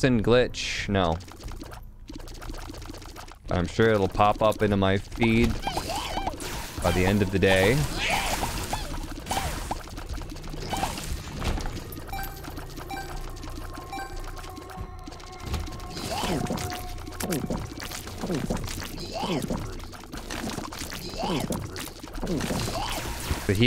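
Video game shots and hits pop and splat rapidly.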